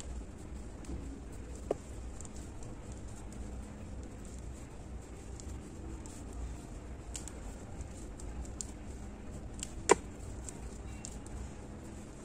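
A crochet hook softly clicks and scrapes against yarn.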